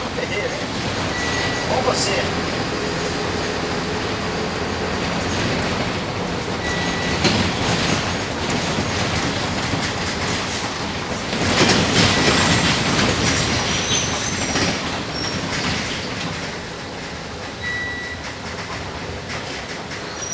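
The inside of a bus rattles and clatters over the road.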